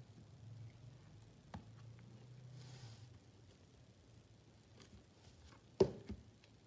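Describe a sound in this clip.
Stiff cardboard book pages flip and tap softly.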